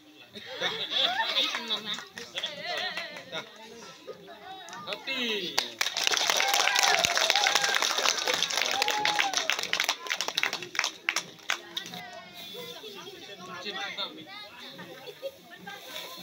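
A crowd of children chatter and shout excitedly nearby.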